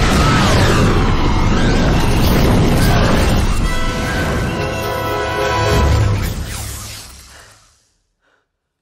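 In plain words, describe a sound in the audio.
A large burst of flame roars loudly.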